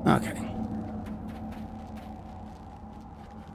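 Footsteps crunch on dry, rocky ground.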